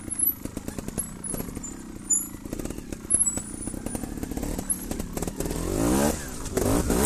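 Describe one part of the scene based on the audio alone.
Bicycle tyres rattle and crunch over loose rocks.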